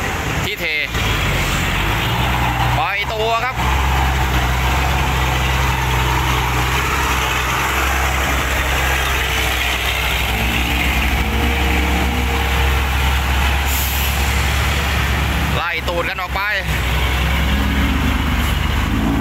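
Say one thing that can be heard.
A diesel dump truck engine idles close by.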